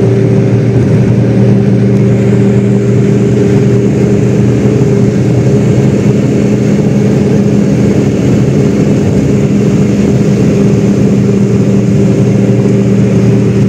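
Tyres roll on asphalt, heard from inside a car.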